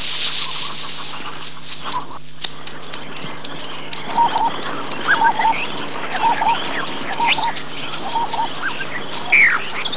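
An elephant plods heavily along a dirt track.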